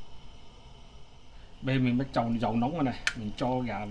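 Oil trickles into a pan.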